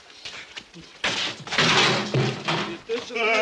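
A metal rubbish bin clatters over onto the pavement.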